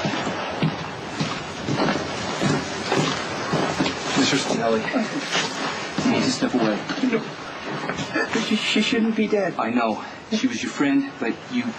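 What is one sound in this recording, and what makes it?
A young man sobs and cries loudly up close.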